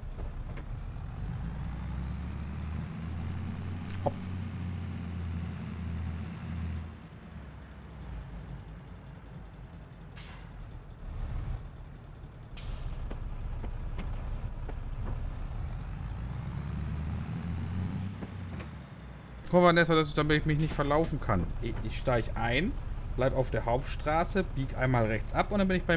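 A tractor engine hums and rumbles steadily.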